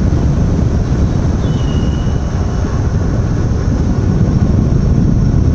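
An electric unicycle's tyre rolls and hums on asphalt.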